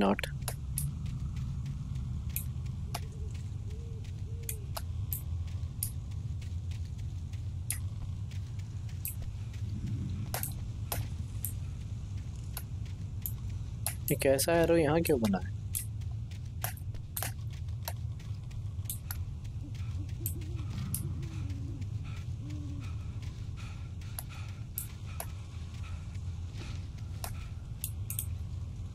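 Footsteps crunch through dry undergrowth.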